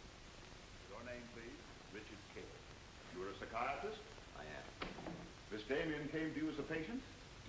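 A man speaks firmly at a distance in an echoing room.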